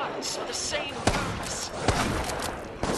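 A blast bursts loudly close by.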